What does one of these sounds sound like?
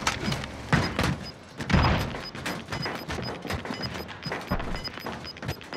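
Footsteps clank on a metal roof.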